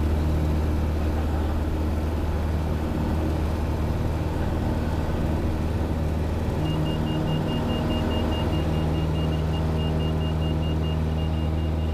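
A small propeller plane's engine drones steadily from close by.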